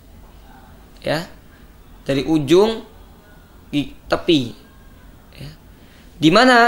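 A young man speaks calmly and clearly into a close microphone, in short bursts with pauses.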